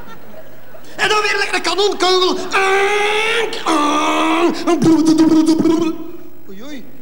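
A man sings loudly into a microphone in a large hall.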